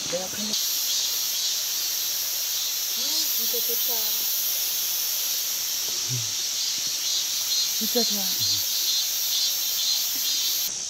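Water trickles and rushes steadily nearby.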